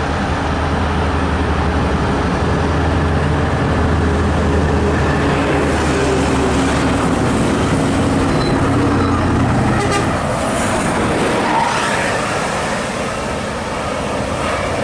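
A bus engine rumbles loudly as the bus approaches and passes close by.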